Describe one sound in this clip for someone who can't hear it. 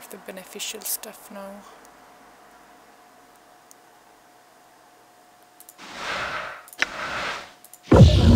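A game interface gives soft clicks and chimes as options are picked.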